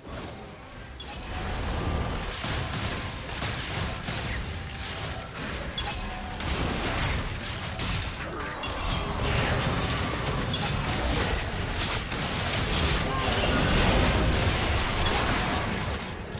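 Fantasy game sound effects of spells and blows clash and crackle.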